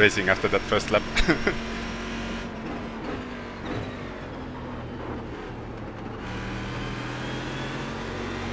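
A racing car engine drones steadily from inside the cockpit.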